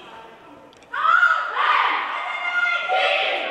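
A group of young women shout together in a loud cheer.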